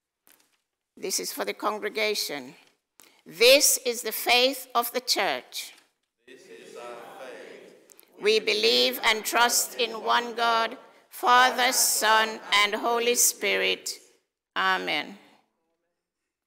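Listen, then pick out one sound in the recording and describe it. A group of men and women recite together in a large echoing hall.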